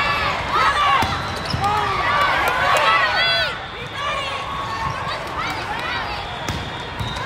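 A volleyball is struck with sharp thumps.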